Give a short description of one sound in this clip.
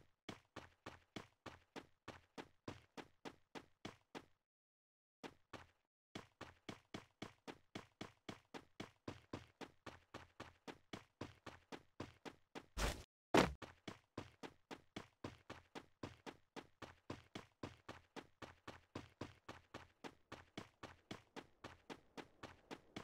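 Footsteps of a game character thud rhythmically while running over grass and rock.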